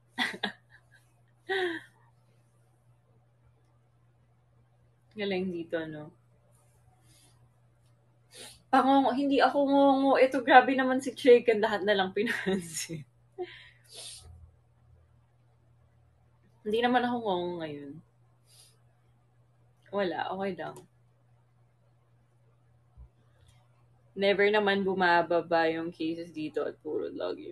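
A young woman talks casually and laughs close to a phone microphone, in bursts with pauses.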